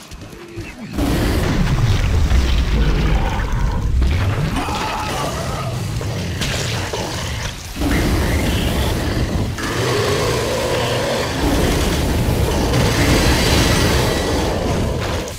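A flamethrower roars in loud bursts.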